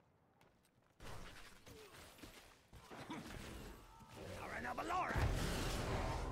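Fantasy battle sound effects of spells and weapons clash and zap.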